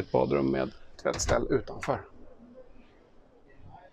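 A door latch clicks as a door opens.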